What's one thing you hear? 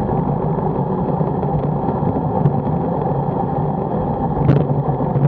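Wind rushes and buffets steadily past a fast-moving rider.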